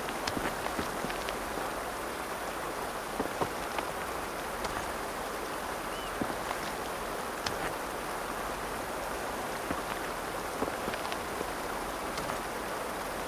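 Stones clack as they are set on top of one another.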